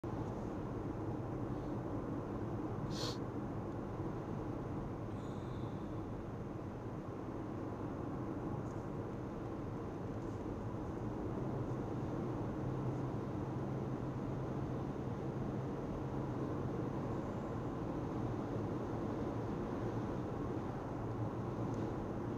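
Tyres roll steadily over a paved road.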